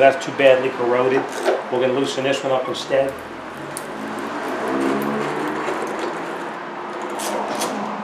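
A ratchet wrench clicks as a bolt is turned.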